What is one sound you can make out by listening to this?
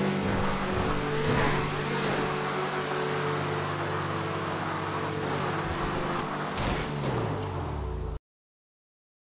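A car engine hums steadily and then cuts off.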